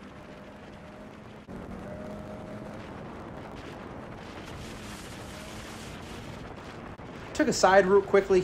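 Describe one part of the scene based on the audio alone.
A snowmobile engine hums steadily while riding over snow.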